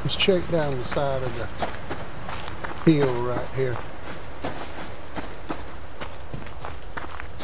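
Footsteps crunch through grass and gravel.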